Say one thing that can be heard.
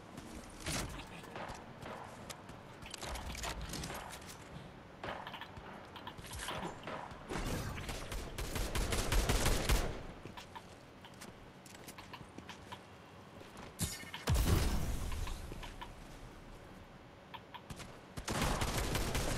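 Footsteps patter quickly on hard floors and ground.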